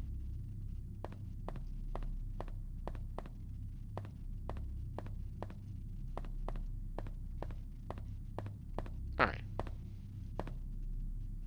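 Footsteps tap slowly and evenly on a hard floor.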